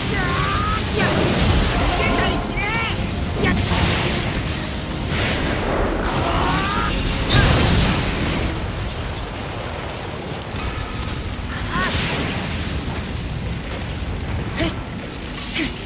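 Blades slash and slice repeatedly.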